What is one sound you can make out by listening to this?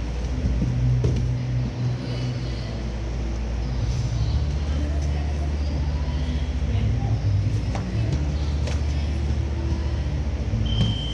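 Bare feet thud and shuffle on a padded mat.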